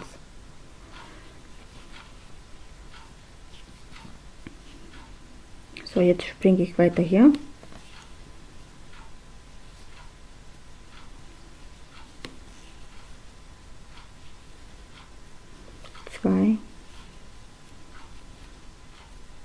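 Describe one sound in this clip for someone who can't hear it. A crochet hook softly clicks and rustles through yarn.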